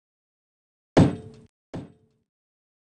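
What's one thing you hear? Coins jingle in a short, bright burst.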